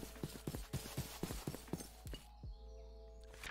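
Footsteps tread quickly on grass.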